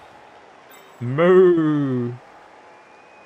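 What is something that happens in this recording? A man speaks briefly through a close microphone.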